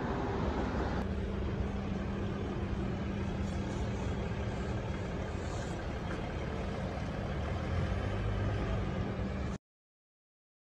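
A V8 off-road SUV rumbles as it drives slowly away.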